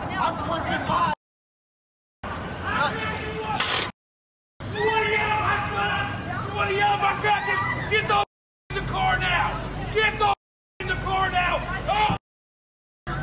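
A woman shouts angrily nearby.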